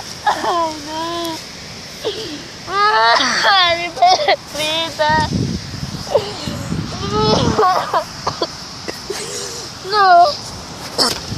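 A young boy cries and wails loudly close by.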